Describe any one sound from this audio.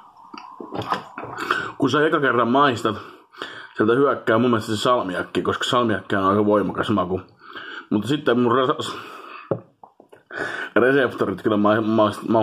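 A man talks animatedly close to a microphone.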